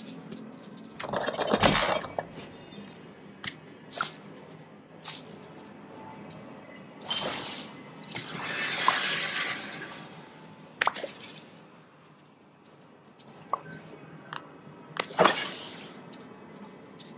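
Magical chimes and whooshes sound as sparkles burst.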